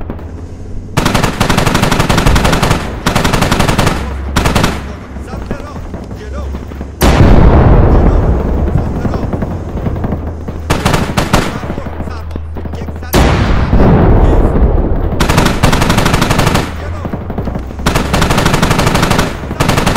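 A heavy machine gun fires in long, rapid bursts.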